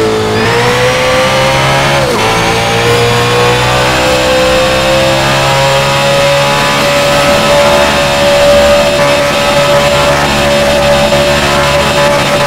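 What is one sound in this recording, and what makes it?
A racing car engine roars at high revs, slowly climbing in pitch.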